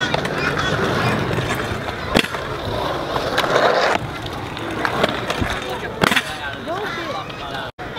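Scooter wheels roll and rumble over concrete.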